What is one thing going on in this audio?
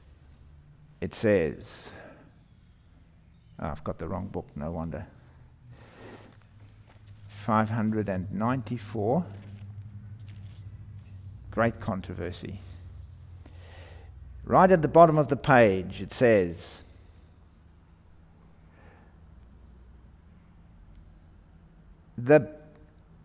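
A middle-aged man speaks slowly and calmly through a microphone, with pauses, in an echoing room.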